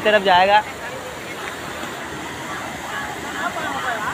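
Water rushes over rocks.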